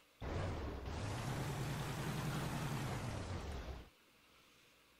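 A heavy tank engine rumbles loudly.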